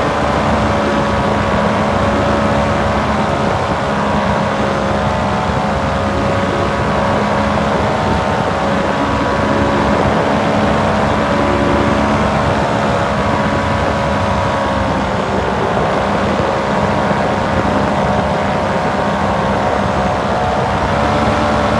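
A small motor drones steadily close by, its pitch dipping and rising again.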